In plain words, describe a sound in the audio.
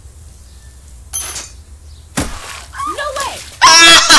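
A bucket of paint tips over and splashes onto someone.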